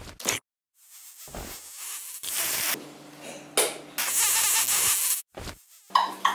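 A young man slurps a noodle noisily.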